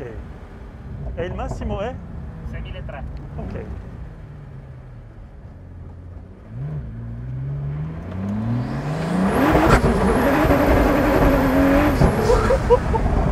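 Wind rushes past in an open car.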